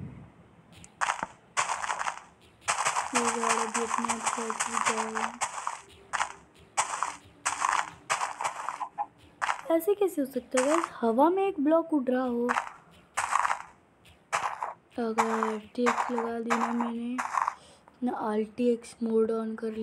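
Leafy blocks break with short, crunchy rustles, again and again.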